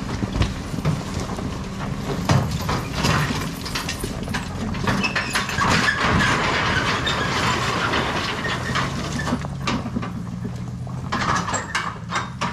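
Tyres and a trailer crunch and rattle over rocky gravel.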